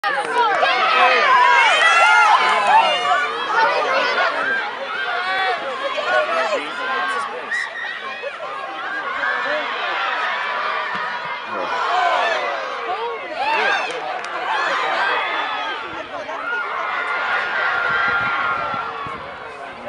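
Young women players call out to each other outdoors.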